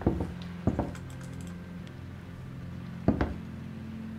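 A wooden door opens with a click.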